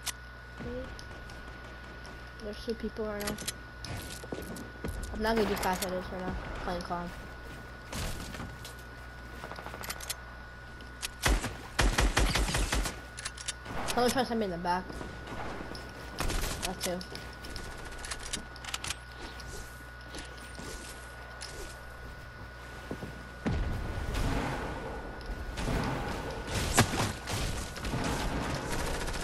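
Wooden walls snap into place again and again in a video game.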